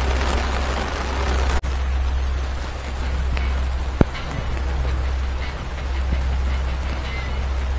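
Heavy rain pours steadily onto water outdoors.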